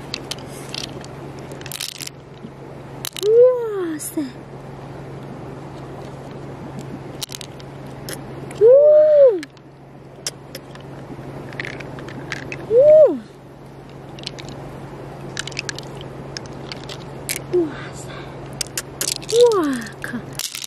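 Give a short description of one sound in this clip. Small beads click against a hard shell.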